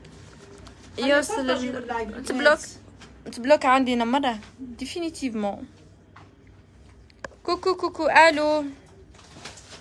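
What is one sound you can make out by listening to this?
A middle-aged woman talks close by with animation.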